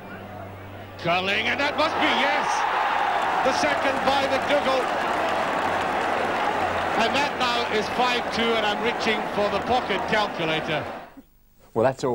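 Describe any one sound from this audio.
A large crowd erupts in a loud roar of cheering.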